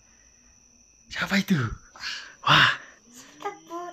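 A young child laughs loudly nearby.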